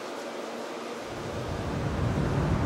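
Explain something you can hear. A cat purrs with a low rumble right beside the microphone.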